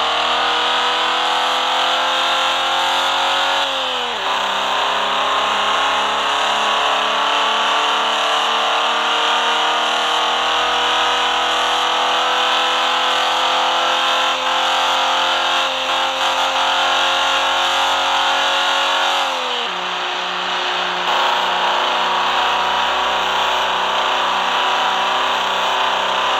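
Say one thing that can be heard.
A car engine roars as it accelerates, its pitch climbing slowly and dropping sharply at each gear change.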